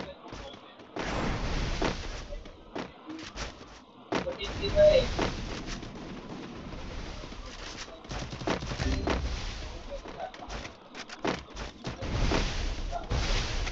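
Footsteps run quickly over grass and ground.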